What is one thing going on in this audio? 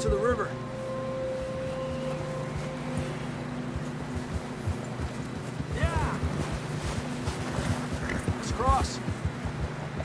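Horse hooves crunch through deep snow.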